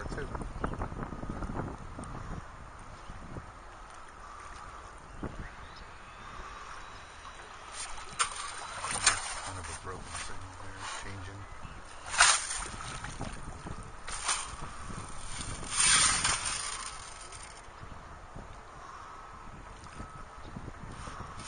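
A metal detector sweeps over shallow water.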